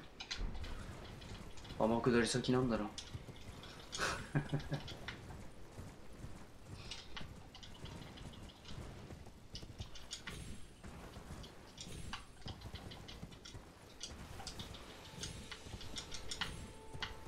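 A horse's hooves thud and clatter as it gallops.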